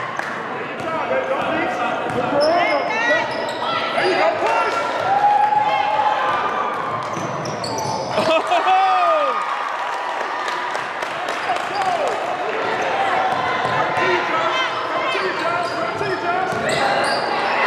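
Spectators chatter and cheer in an echoing gym.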